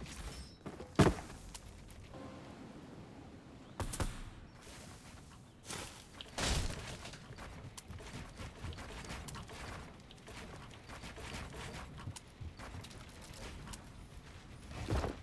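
Loud thuds and bangs from a video game ring out now and then.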